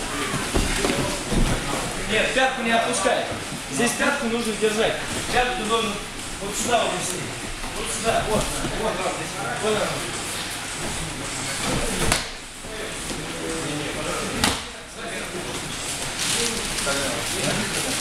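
Young men talk and call out.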